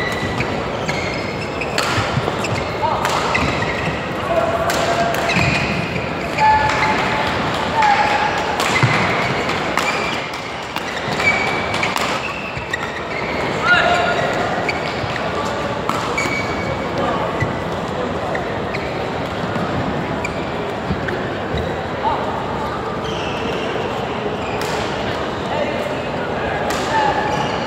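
A large indoor hall echoes.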